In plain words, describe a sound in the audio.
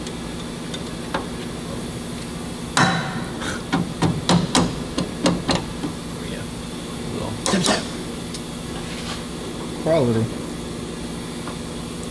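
Metal tools click and clank against car parts.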